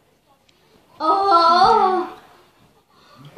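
A second young boy laughs close by.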